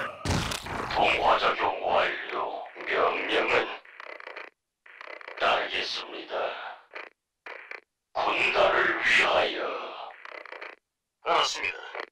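A laser beam hums as a game unit fires at another.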